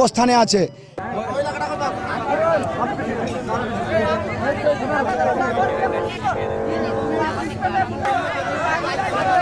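A large crowd of women chants loudly together outdoors.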